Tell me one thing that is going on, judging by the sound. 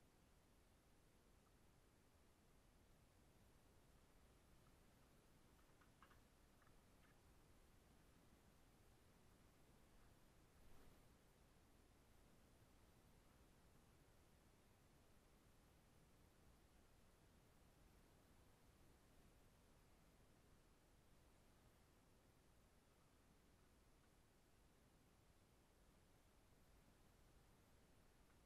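Wires rustle and tick faintly as hands twist them together.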